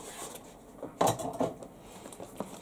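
A box knocks lightly as it is picked up.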